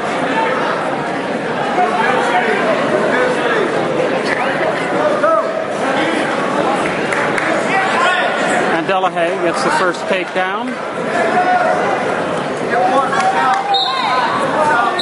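A crowd of spectators shouts and cheers in a large echoing gym.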